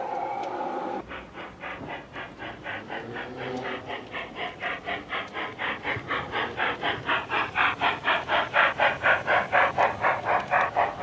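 A small steam locomotive chuffs rhythmically, growing louder as it approaches.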